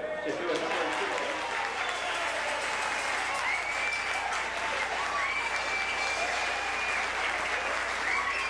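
Several men clap their hands along in rhythm.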